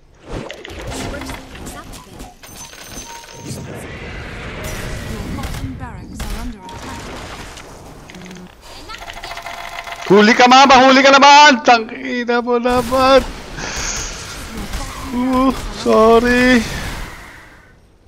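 Game sound effects clash and crackle in quick bursts.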